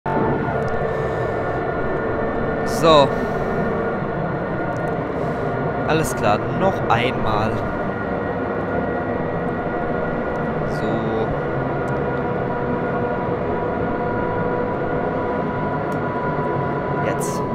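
A train rumbles steadily along the track with a low, even drone.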